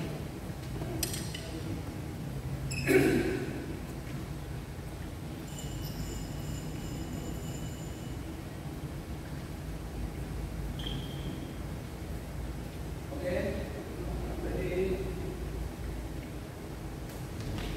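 A racket strikes a shuttlecock with a sharp pop.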